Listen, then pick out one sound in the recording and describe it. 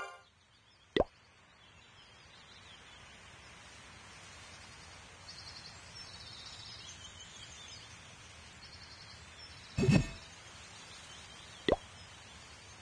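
A game interface clicks as buttons are tapped.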